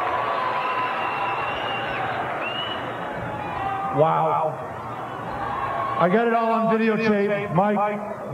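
A large outdoor crowd cheers and whistles.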